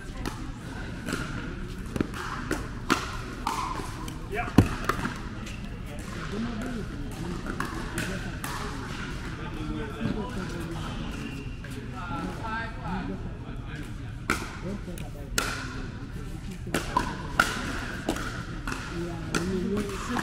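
Paddles pop against a plastic ball in a quick rally.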